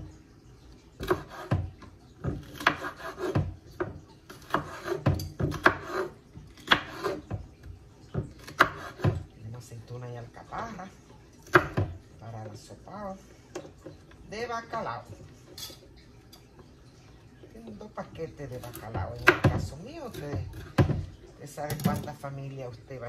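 A knife chops vegetables on a wooden cutting board.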